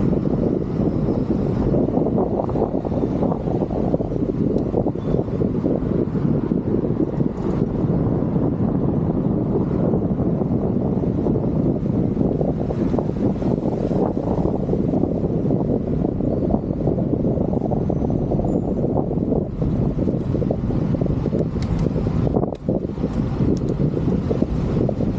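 Wind rumbles steadily across a microphone outdoors.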